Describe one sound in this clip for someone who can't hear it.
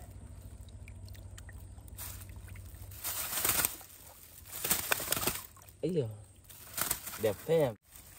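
Water splashes as fish flap about in a tub.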